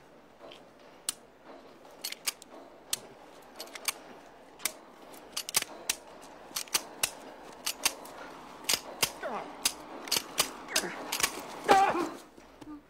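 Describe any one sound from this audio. A pistol clicks again and again without firing.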